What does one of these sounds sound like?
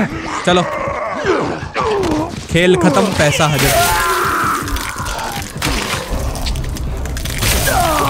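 A zombie growls and snarls.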